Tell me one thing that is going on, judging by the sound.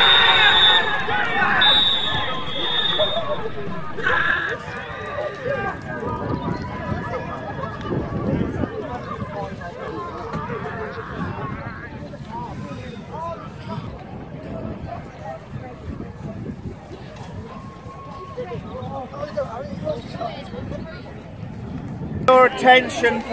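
Players cheer and shout across an open pitch outdoors.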